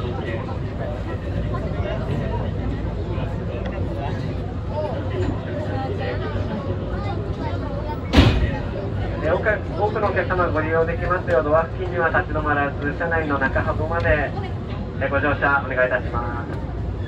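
A train's motor hums low and steady.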